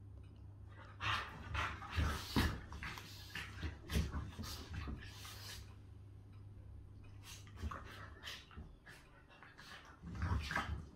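Two dogs growl and snarl playfully.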